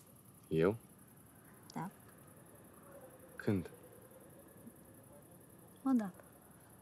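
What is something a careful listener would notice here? A young woman answers softly in short words, close by.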